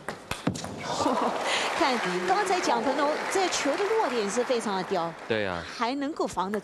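A crowd applauds and cheers in a large hall.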